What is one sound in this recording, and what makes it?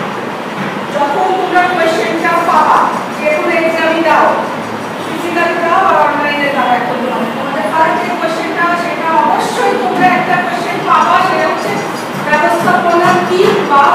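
A woman speaks calmly to a room.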